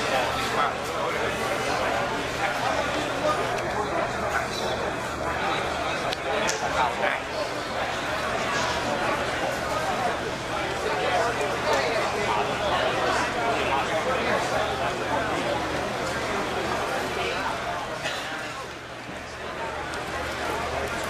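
Many voices murmur and chatter in a large echoing hall.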